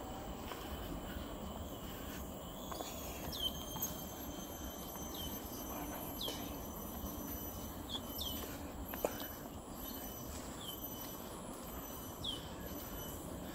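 Footsteps thud on a wooden boardwalk outdoors.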